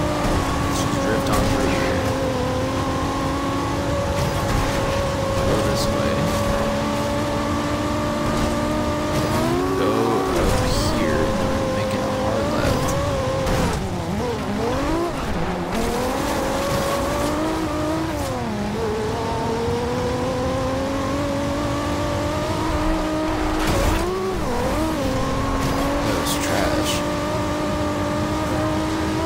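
A race car engine roars loudly, rising and falling in pitch as it shifts gears.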